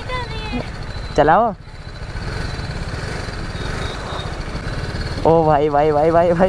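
A motorcycle engine idles with a low, rapid rumble close by.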